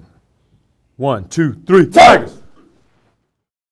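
A group of young men shout together in a huddle.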